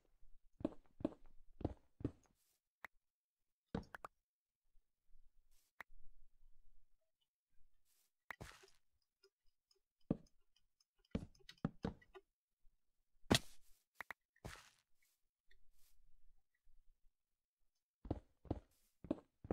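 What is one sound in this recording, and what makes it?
Blocks are dug and broken with quick knocking thuds.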